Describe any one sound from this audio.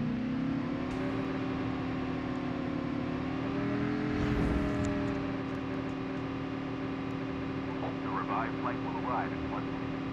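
A vehicle engine hums steadily as it drives, rising slightly in pitch and then holding.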